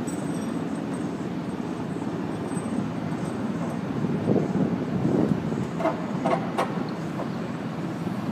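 A hand tool works on timber.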